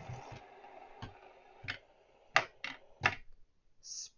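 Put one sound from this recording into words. Metal fidget spinners clack down onto a hard table, one after another.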